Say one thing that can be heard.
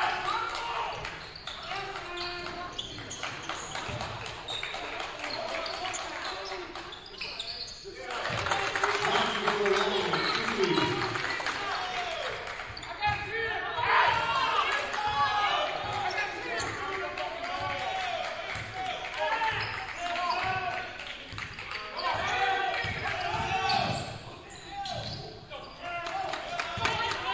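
A basketball thumps as it is dribbled on a wooden floor.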